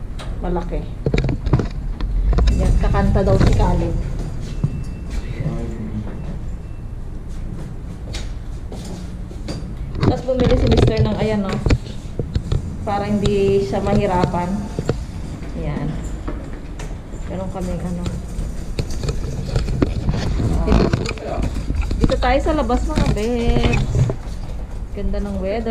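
A young woman talks close by, chattering casually.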